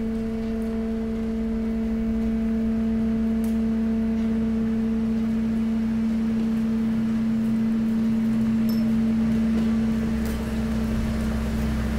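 Loose rubbish shifts and scrapes along a metal floor.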